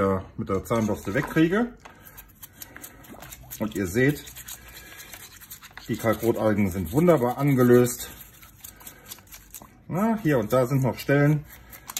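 Water sloshes and splashes softly in a bucket.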